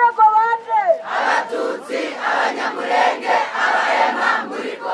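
A large crowd of young people chants and sings together outdoors.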